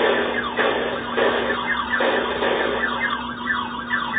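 A flying saucer warbles in a high pulsing tone.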